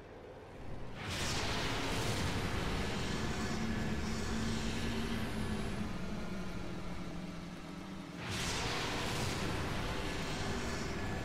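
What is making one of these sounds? A quad bike engine drones steadily.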